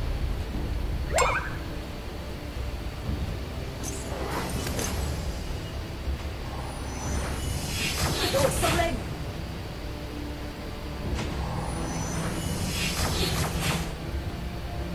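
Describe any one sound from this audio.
Game sound effects whoosh and clash.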